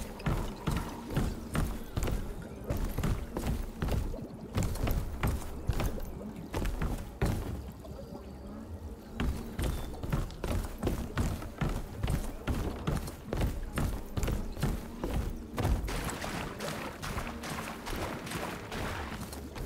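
Footsteps thud quickly on wooden stairs and floors.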